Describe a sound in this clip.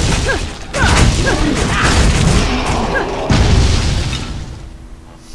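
Fiery spells crackle and roar in a fight.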